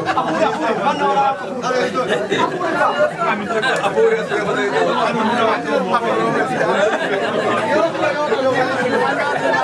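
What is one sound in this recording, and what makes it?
A crowd of men talk and laugh over one another close by.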